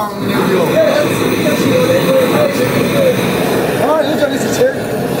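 A gas torch roars with a steady hiss.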